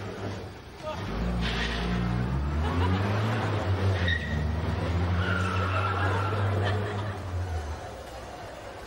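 A small car engine runs and pulls away.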